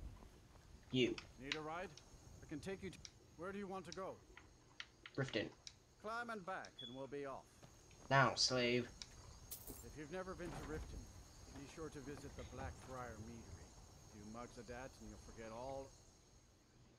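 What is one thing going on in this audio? A man speaks calmly in a gruff voice, close by.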